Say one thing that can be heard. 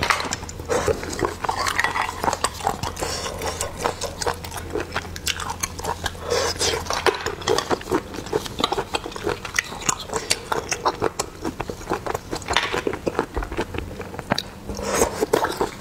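Snail shells click against each other and against a toothpick.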